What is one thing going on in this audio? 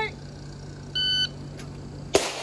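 A shot timer beeps.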